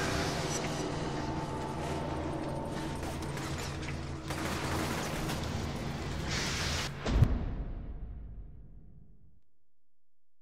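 Tense game music plays, then fades away.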